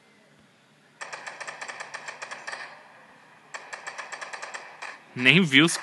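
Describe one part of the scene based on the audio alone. An assault rifle fires rapid bursts.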